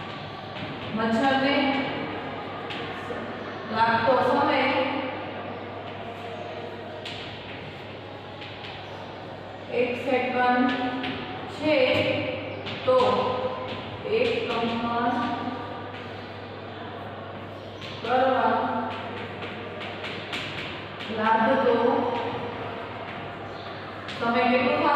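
A young woman speaks in short phrases, explaining.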